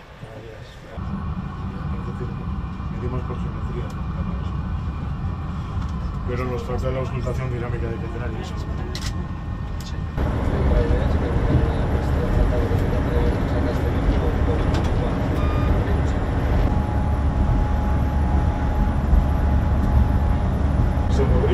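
A high-speed train rumbles along the track, heard from inside the driver's cab.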